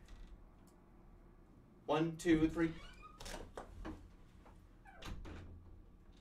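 A door opens and closes.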